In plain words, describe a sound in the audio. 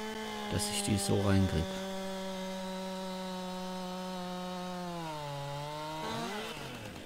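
A chainsaw cuts through a tree trunk.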